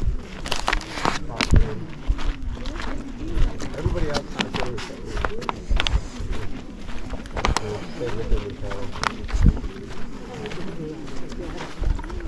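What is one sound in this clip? Footsteps crunch on sandy ground.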